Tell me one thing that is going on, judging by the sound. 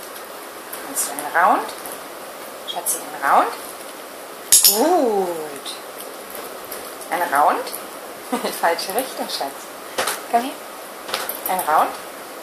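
A small dog whines and yelps in high, wavering cries.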